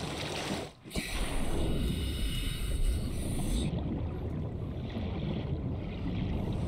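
A muffled underwater rumble goes on steadily.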